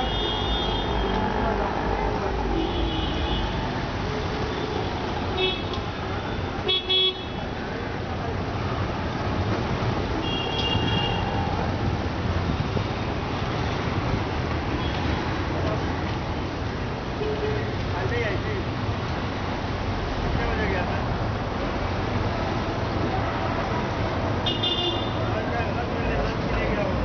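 Road traffic rumbles steadily outdoors.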